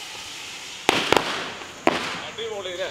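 Fireworks bang sharply outdoors.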